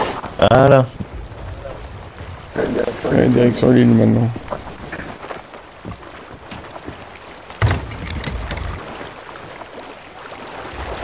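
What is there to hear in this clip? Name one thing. Sea waves wash against a wooden ship's hull.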